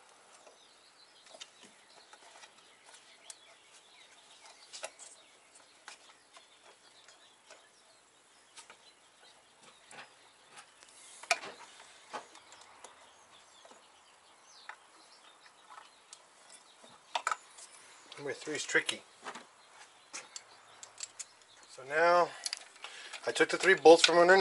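Metal tools click and clink against engine parts.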